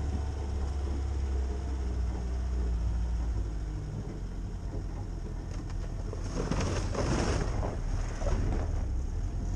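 Tyres roll and bump over rough grass and dirt.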